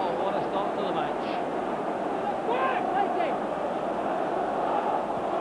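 A large stadium crowd roars and chants loudly throughout.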